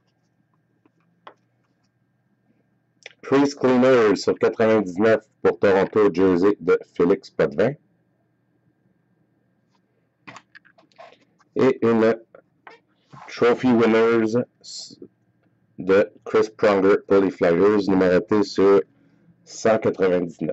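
Trading cards slide and rustle between fingers.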